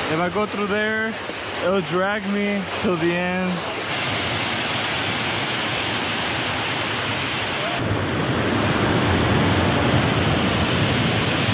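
A small waterfall pours over a weir and rushes into a pool.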